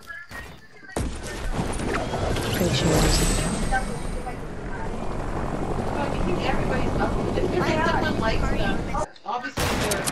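A helicopter rotor whirs loudly close by.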